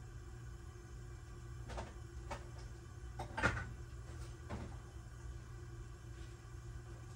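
Thick liquid bubbles and pops softly in a pot.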